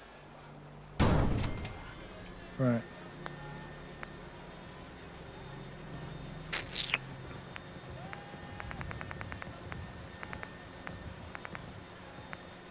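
A generator hums steadily.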